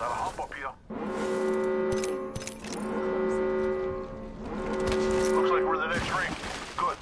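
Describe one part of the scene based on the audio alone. A warning alarm sounds in repeated steady tones.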